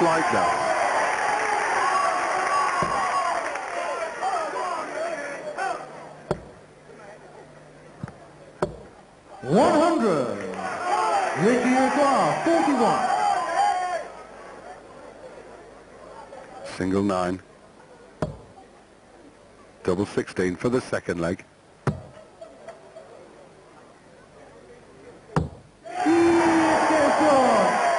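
A large crowd cheers and applauds in a big echoing hall.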